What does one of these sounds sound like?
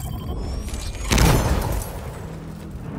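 A loud explosion booms and crackles.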